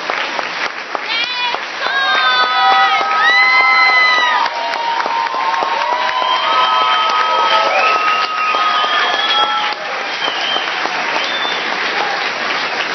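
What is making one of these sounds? A choir of young voices sings in a large echoing hall.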